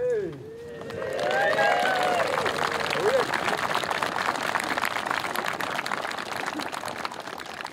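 A crowd claps and applauds.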